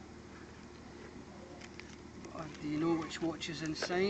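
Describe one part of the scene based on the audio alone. Paper rustles as papers are lifted out.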